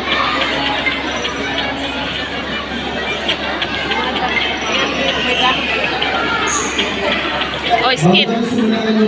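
A large crowd of children chatters in an echoing hall.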